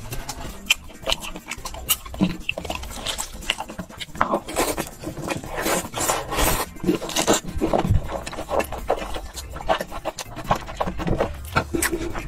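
A young man chews and slurps food loudly and close up.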